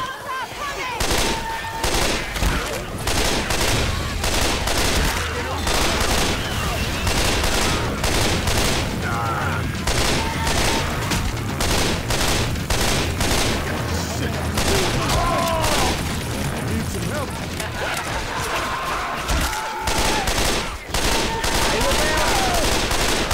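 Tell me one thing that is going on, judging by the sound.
An assault rifle fires rapid bursts of gunshots.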